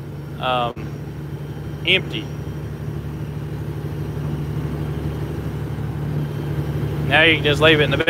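Tyres roll along a road.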